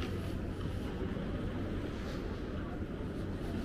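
A suitcase rolls along the pavement on small wheels.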